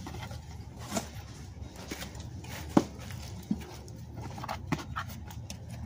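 Cardboard boxes thump and knock as they are handled.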